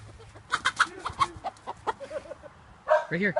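A chicken squawks and flaps in alarm.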